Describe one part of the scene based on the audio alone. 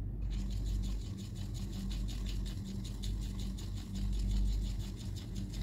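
A brush swirls and dabs in wet paint.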